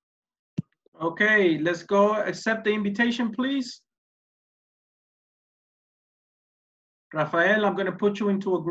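A man speaks with animation through an online call.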